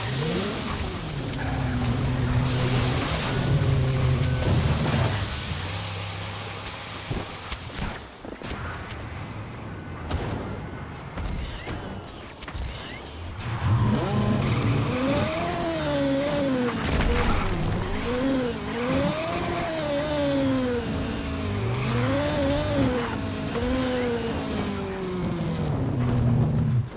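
A race car engine revs high and changes pitch as the car speeds along.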